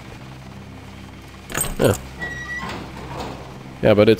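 A heavy door slides open.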